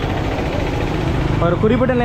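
A motorbike engine hums nearby.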